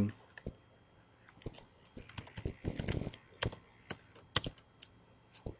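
Keys click on a computer keyboard as someone types.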